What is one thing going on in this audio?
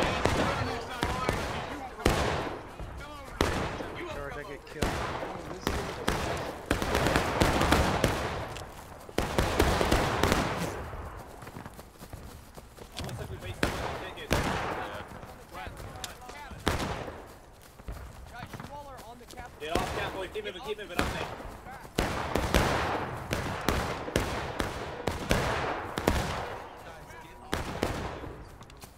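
Rifle shots crack and boom nearby, echoing through the woods.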